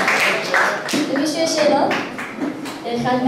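A young girl speaks into a microphone.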